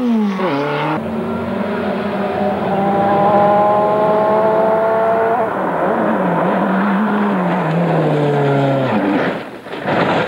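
A rally car engine roars closer, rising and falling with gear changes.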